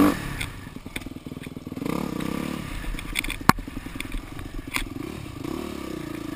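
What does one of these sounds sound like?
A dirt bike engine buzzes and revs close by.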